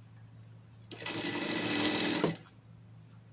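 A sewing machine stitches in a short, fast burst.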